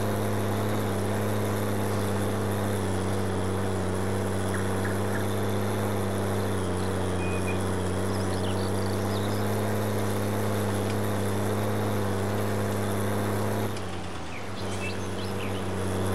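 A tractor engine drones steadily, then dips briefly as the tractor slows.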